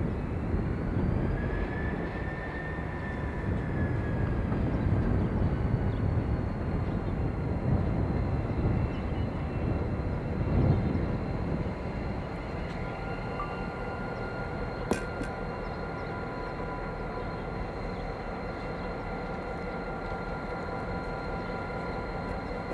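A diesel-electric locomotive engine rumbles as the locomotive rolls slowly along the track.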